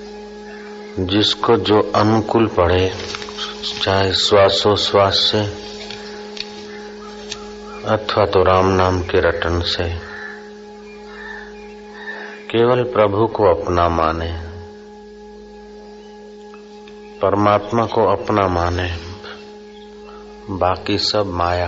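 An elderly man speaks slowly and calmly, with long pauses.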